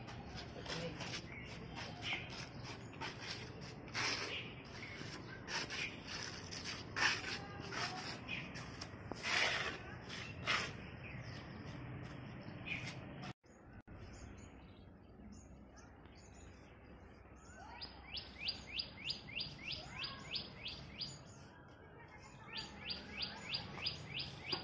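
A trowel scrapes and smooths wet cement on a hard floor.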